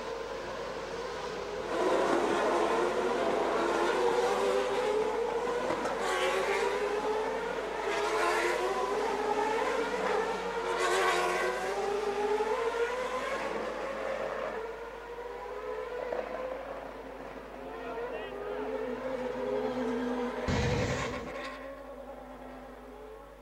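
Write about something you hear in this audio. Racing car engines whine and rise and fall in pitch at high revs.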